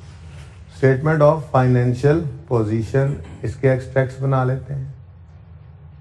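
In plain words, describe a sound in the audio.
A man lectures calmly into a close microphone.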